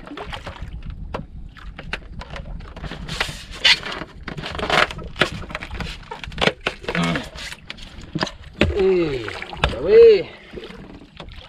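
Water laps against a small wooden boat.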